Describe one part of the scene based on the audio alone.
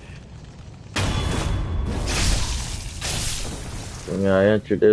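A blade stabs into flesh with a wet slash.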